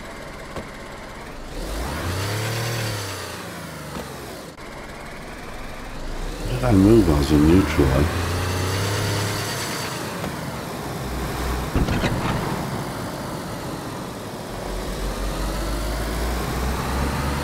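A car engine hums and revs up and down as the car drives along.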